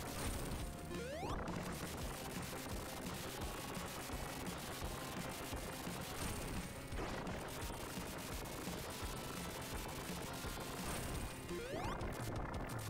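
Short electronic sound effects chirp and zap.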